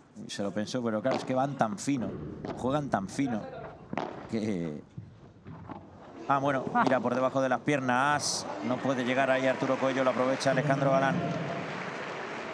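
Padel balls pop sharply off rackets and glass walls.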